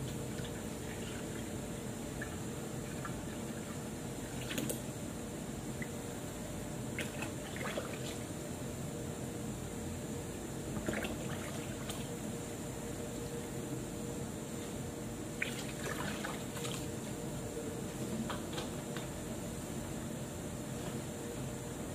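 A plastic bottle clicks and knocks as it is handled.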